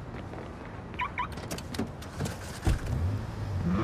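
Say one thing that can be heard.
A car door opens and shuts with a clunk.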